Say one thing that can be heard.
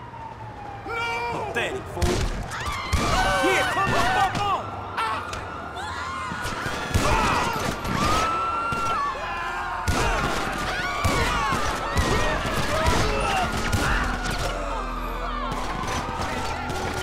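Rapid gunshots crack and echo nearby.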